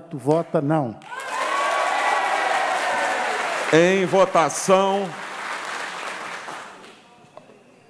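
A man speaks loudly into a microphone in a large hall.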